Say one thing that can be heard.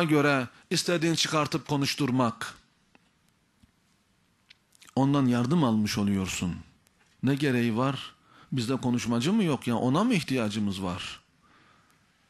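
A middle-aged man speaks forcefully into a microphone, with pauses.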